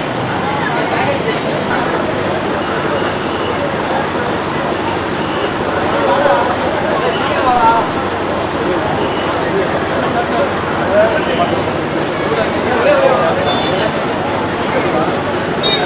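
A large crowd of men and women chatters loudly all around outdoors.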